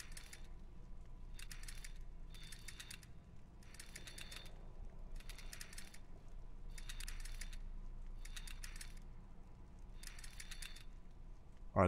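Metal dials click and rattle as they turn, again and again.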